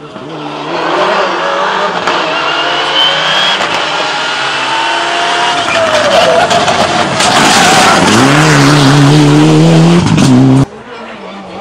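A rally car engine roars loudly and revs hard as the car speeds closer.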